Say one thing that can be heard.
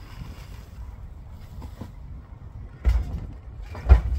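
A bag of rubbish thumps into a metal bin.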